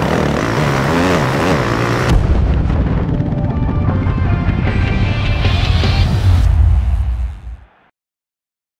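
A motorcycle engine roars loudly and revs.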